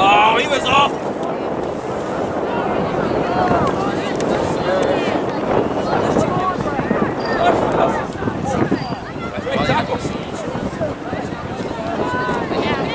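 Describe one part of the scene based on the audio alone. Young players shout to each other outdoors.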